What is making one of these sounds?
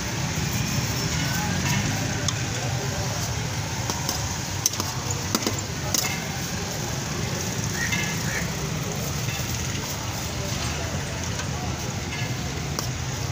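Traffic hums steadily on a busy street outdoors.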